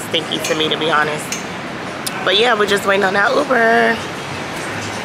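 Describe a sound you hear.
A young woman speaks animatedly, close to the microphone.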